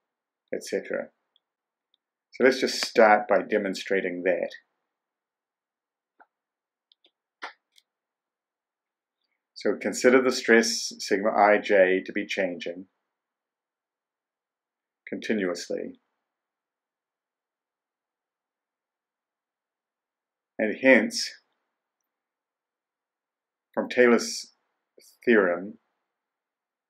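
A man speaks calmly into a close microphone, in short phrases with long pauses.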